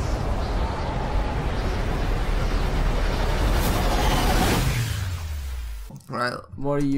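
A deep, roaring rush of wind sweeps past and fades away.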